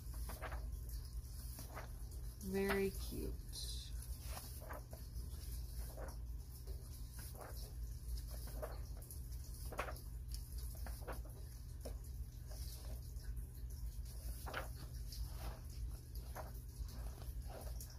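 Paper pages rustle and flip as a book is leafed through.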